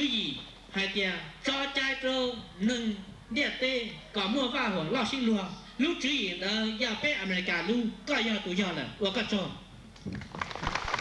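A man speaks into a microphone over a loudspeaker, outdoors.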